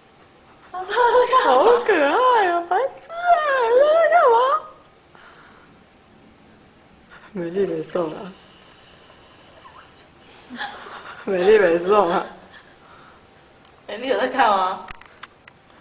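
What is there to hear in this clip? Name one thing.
A woman talks in a high, playful, sing-song voice close by.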